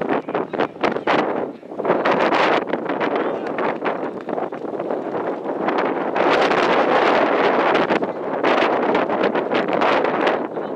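Wind buffets the microphone outdoors in a strong, gusty rush.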